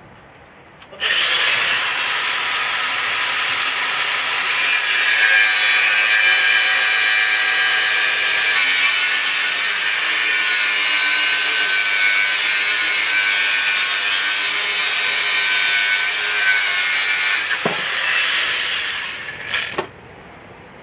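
A power saw whines loudly as it cuts through a metal pipe.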